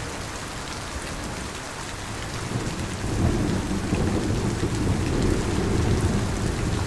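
Heavy rain pours steadily outdoors.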